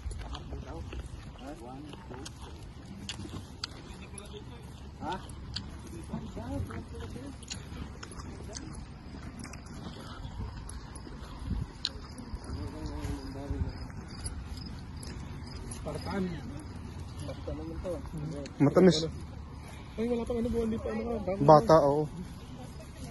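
Young men talk casually nearby outdoors.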